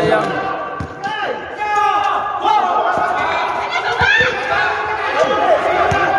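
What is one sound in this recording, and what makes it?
A basketball bounces on the floor with thuds.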